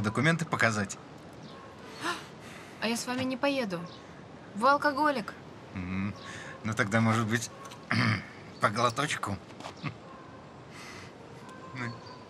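A young woman talks quietly close by.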